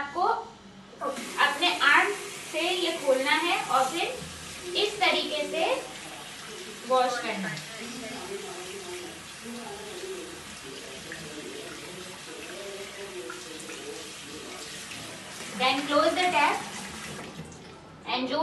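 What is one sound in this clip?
Water runs from a tap into a basin.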